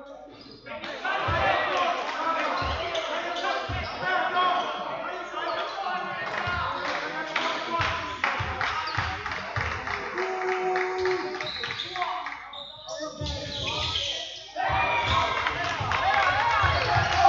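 A crowd cheers and chatters loudly.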